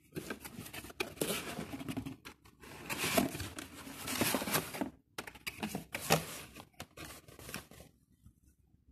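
Cardboard and plastic packaging rustle and crinkle as they are handled.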